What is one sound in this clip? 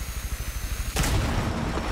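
A rifle fires a short burst of gunshots.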